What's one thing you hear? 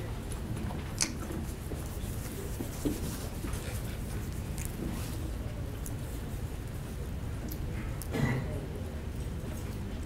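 A door clicks as men walk through it.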